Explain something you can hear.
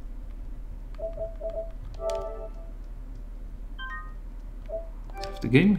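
Short electronic menu beeps chime one after another.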